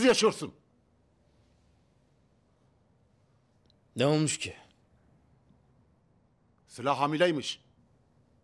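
An elderly man speaks in short, strained bursts, close by.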